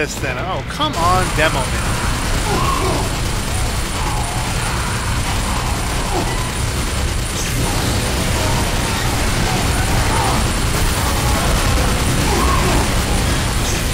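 A heavy rotary gun fires in a long, rapid, roaring burst.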